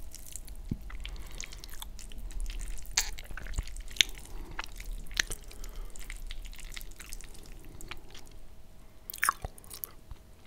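A metal fork scrapes and clinks on a plate while twirling spaghetti.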